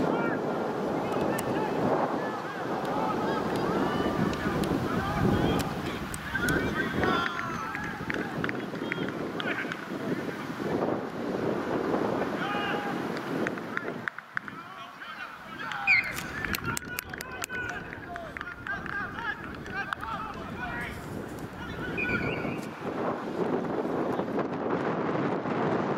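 Wind blows across an open field outdoors.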